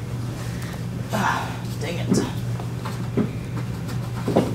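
A young boy speaks cheerfully close by.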